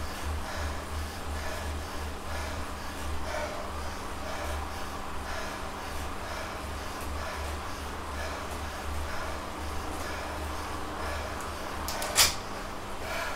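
A bike trainer hums with a steady pulsing rhythm.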